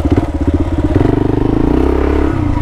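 A motorcycle engine revs up higher.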